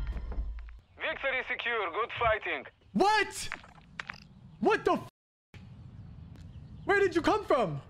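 A young man exclaims loudly with surprise, close to a microphone.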